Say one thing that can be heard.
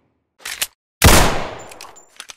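A pistol shot bangs loudly and echoes.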